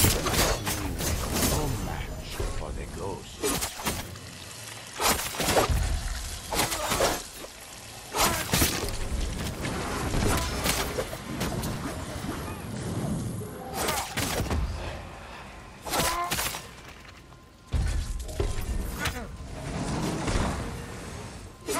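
Swords clash and slash repeatedly in a fast fight.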